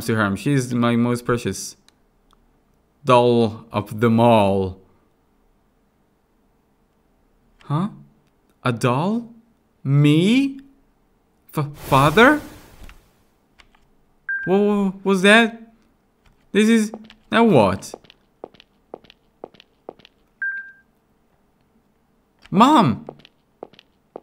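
A young man talks close to a microphone, in bursts with pauses.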